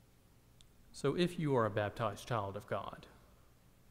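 A man speaks calmly through a microphone in a reverberant hall.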